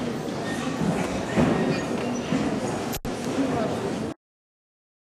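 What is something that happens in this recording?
A children's choir sings in a large echoing hall.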